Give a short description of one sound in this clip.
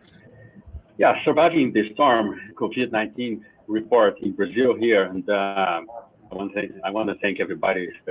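A man speaks steadily through an online call.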